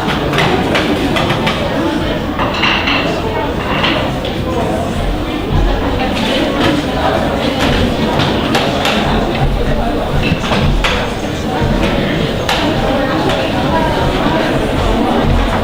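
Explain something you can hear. An ensemble of taiko drums pounds in a large hall.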